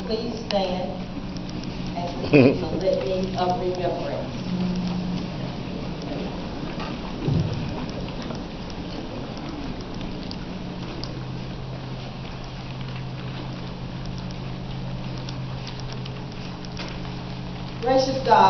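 A crowd of women chatter and talk nearby in a large room.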